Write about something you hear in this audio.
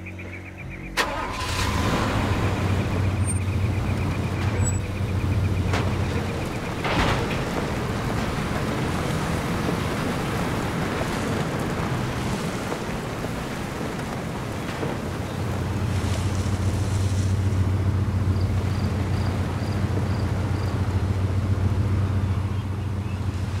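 A car engine starts and rumbles steadily.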